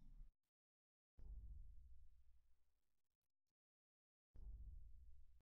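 Deep thunder rumbles in heavy bursts.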